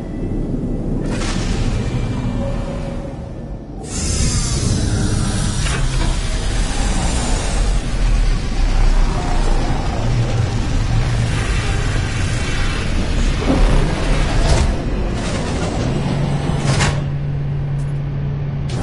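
A spaceship's engines rumble and roar steadily.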